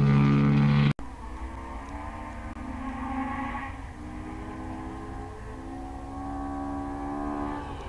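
A second rally car engine hums in the distance and grows nearer.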